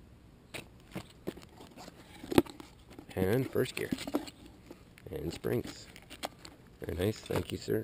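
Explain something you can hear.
A cardboard box flap rustles and taps as it is handled.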